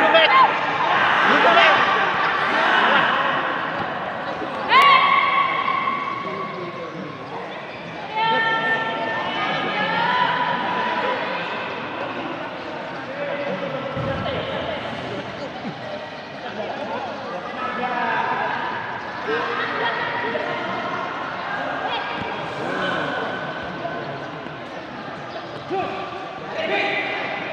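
Spectators in a large echoing hall shout and cheer.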